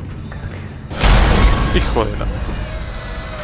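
A heavy metal door slides open with a loud mechanical rush.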